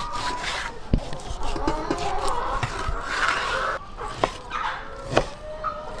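A knife cuts through meat and taps on a wooden board.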